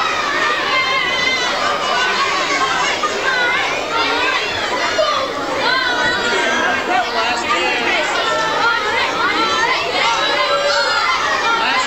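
A large crowd of children chatters and shouts excitedly in an echoing hall.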